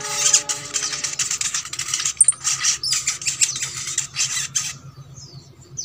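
A small bird sings a fast, loud, chattering song close by.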